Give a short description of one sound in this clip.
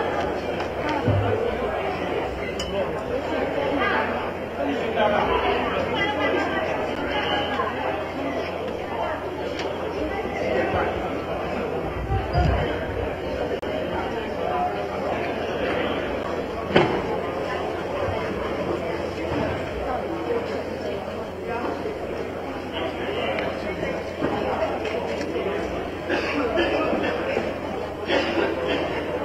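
A crowd of men and women talk and shout at once in a large echoing hall.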